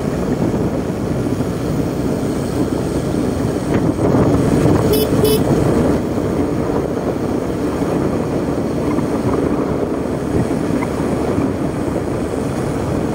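Wind rushes and buffets steadily outdoors.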